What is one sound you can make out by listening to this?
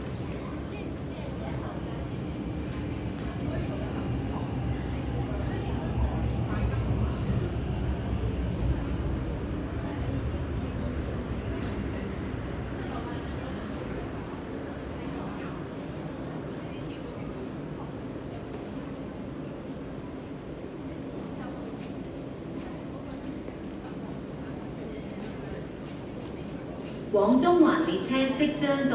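A crowd murmurs softly in a large echoing hall.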